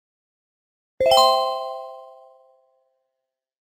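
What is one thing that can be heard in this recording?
A bright chime rings out and fades.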